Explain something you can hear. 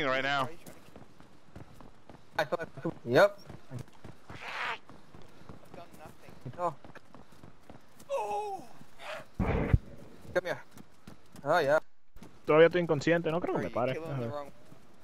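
Footsteps run quickly over hard ground and grass.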